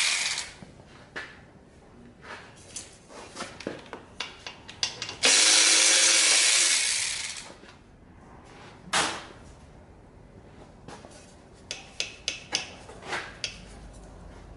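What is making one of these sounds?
Metal parts of a motorbike click and clank as hands work on it.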